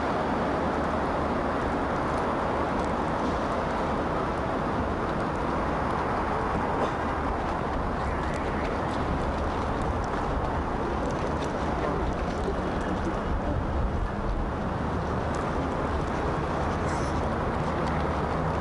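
Footsteps crunch on packed snow as people walk past.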